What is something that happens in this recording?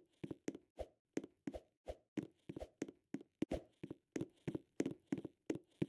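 Game character footsteps patter on stone.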